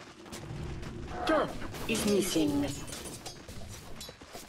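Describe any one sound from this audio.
Spells and blows clash in a fierce game battle.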